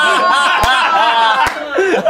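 A young man laughs and talks excitedly.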